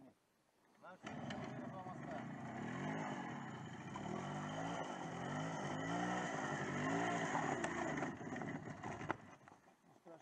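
A motorcycle engine revs up and down close by.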